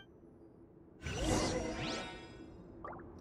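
A magical whoosh swells and rings out.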